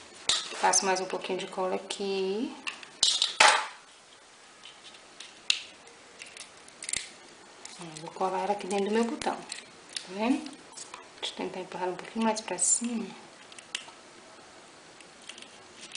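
Small beads and wire click and tap softly as fingers handle them.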